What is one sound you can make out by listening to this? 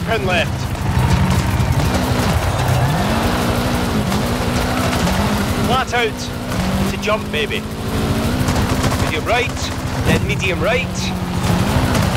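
Tyres skid and crunch over loose gravel.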